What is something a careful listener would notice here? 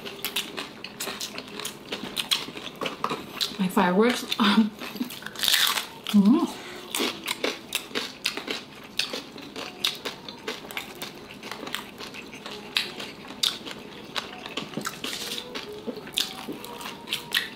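Crunchy fried food crackles loudly as it is chewed close up.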